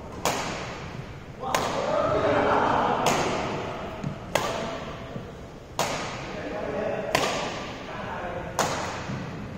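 Badminton rackets strike a shuttlecock in a steady back-and-forth rally, echoing through a large hall.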